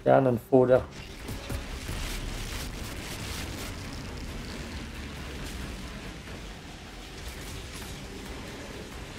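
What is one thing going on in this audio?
Magic blasts crackle and whoosh amid clashing combat.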